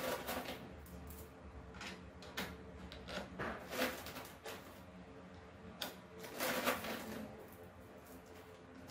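Metal parts clink and tap as they are handled.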